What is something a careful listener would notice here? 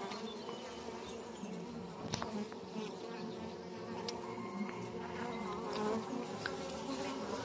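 Honeybees buzz in a dense, steady hum close by.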